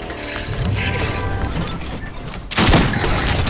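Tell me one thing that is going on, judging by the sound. A pickup truck engine hums and revs.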